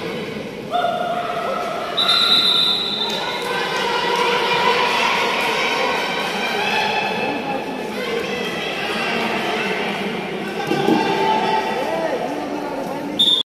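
Young players shout excitedly in a large echoing hall.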